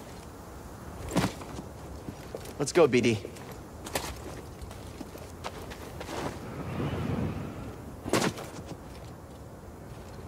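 Footsteps land on rock.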